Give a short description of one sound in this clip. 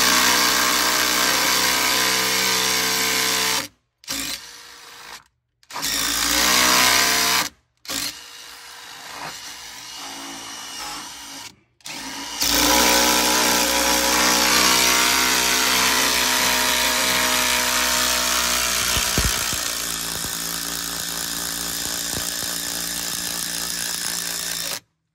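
A cordless drill whirs as it drives screws into a shutter.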